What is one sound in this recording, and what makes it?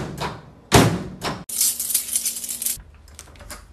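A door handle rattles and a door swings open.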